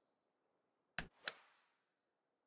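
A golf club strikes a ball with a sharp crack.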